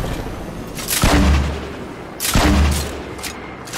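Two loud blasts boom in quick succession.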